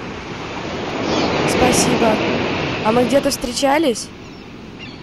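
A young woman talks close by with animation.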